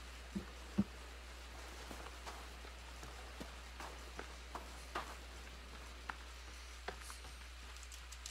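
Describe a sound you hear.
Footsteps crunch on sand and grass.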